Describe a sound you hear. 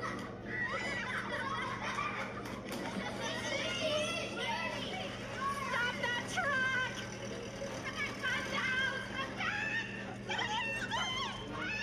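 A woman shouts urgently, heard through a loudspeaker.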